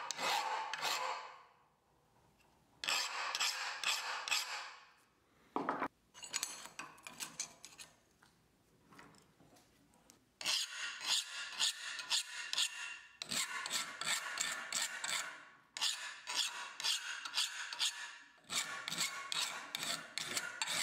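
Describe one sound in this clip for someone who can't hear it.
A metal file rasps back and forth across steel in quick strokes.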